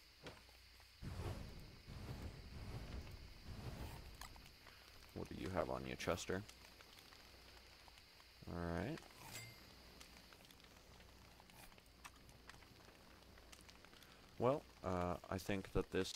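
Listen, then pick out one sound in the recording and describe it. A fire crackles softly.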